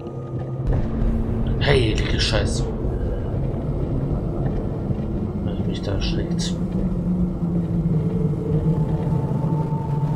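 Water pours down steadily nearby.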